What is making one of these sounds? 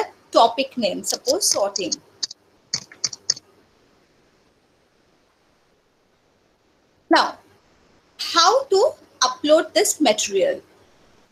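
A young woman speaks calmly and close, as if over an online call.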